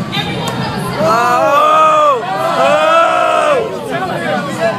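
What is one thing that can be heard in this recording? Young men whoop and cheer loudly.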